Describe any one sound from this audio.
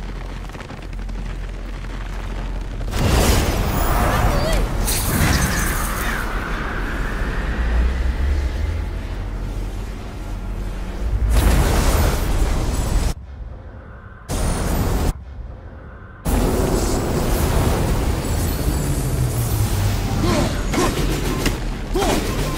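A deep magical energy roars and hums.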